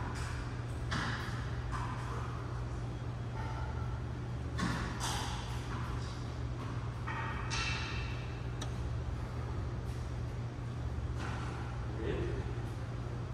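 A tennis racket strikes a ball with a sharp pop, echoing in a large hall.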